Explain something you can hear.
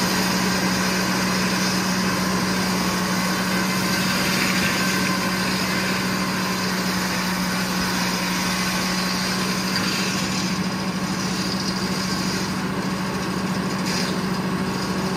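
A sawmill engine drones loudly and steadily.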